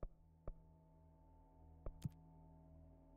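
Soft interface clicks sound a few times.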